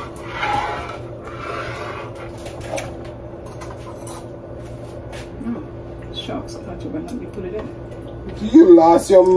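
A spoon stirs and scrapes thick soup in a metal pot.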